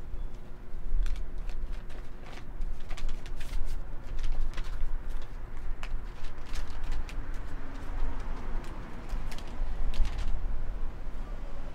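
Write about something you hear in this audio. Paper rustles and crackles as a letter is unfolded close by.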